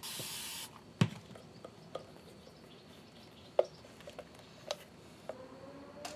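A leather holster with metal studs knocks and clicks as it is handled.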